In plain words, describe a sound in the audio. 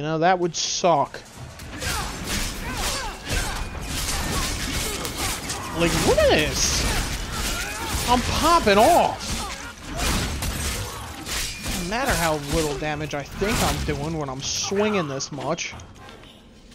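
Swords clash and slash in a fierce fight.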